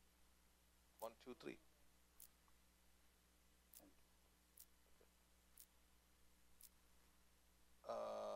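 A man speaks through a microphone, pausing often.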